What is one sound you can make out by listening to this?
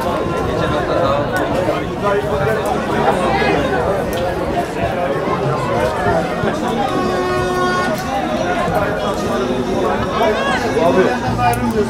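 A crowd of spectators chatters and calls out nearby, outdoors.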